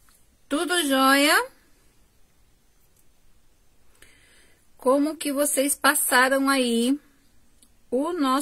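A middle-aged woman sings close by, in short phrases with pauses between them.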